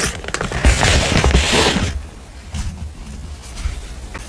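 Paper rustles and slides as sheets are moved.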